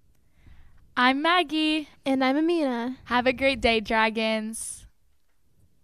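A young woman speaks cheerfully into a microphone, close by.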